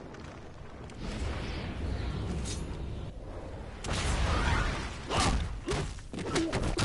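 Ice cracks and breaks apart.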